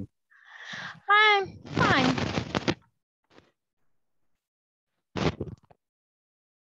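A woman speaks with animation through a headset microphone on an online call.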